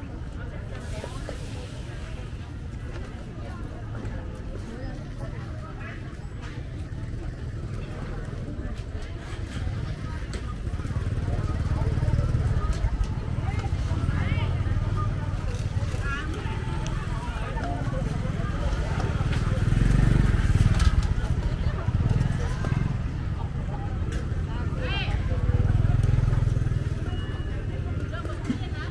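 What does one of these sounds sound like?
Voices of a market crowd murmur nearby outdoors.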